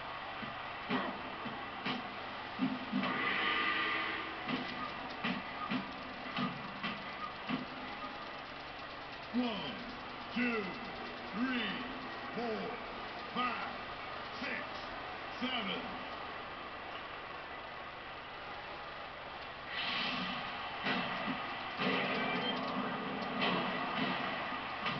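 Punches thud in quick blows through a television speaker.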